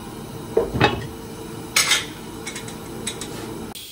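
A glass lid clinks onto a pan.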